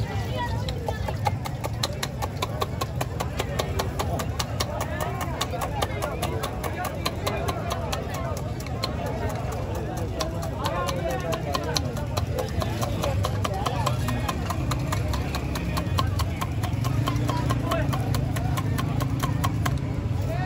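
A spoon clinks rapidly against a metal cup.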